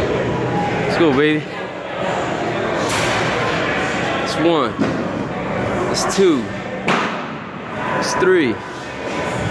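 A man grunts loudly with effort, again and again.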